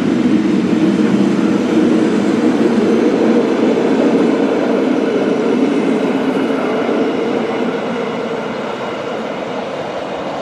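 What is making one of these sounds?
Train wheels clatter rhythmically over the track joints.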